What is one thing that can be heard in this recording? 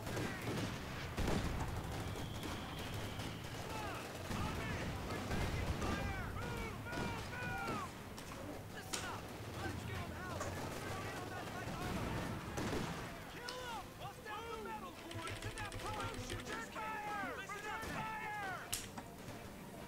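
Shells explode with deep booms.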